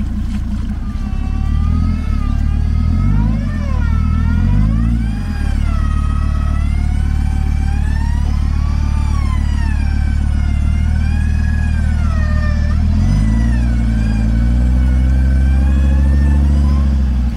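An engine revs up and down with a rising and falling whine.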